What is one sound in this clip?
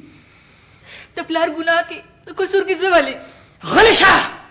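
A young woman speaks tearfully.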